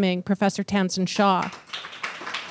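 A woman speaks into a microphone through a loudspeaker.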